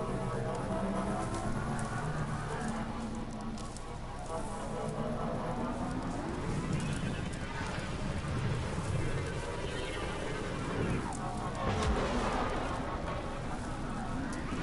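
A vehicle engine whines and surges.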